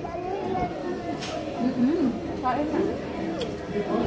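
A young child babbles.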